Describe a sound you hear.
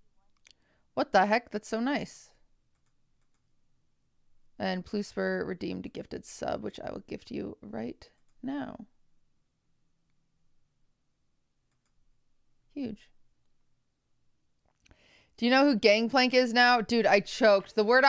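A young woman talks casually into a close microphone, in bursts with pauses.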